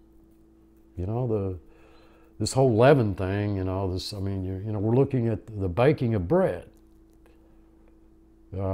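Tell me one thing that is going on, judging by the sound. An elderly man speaks calmly and earnestly into a nearby microphone.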